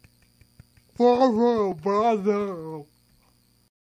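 A young man sings loudly into a close microphone.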